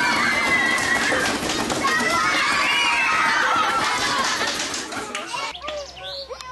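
A crowd of children chatters loudly in an echoing room.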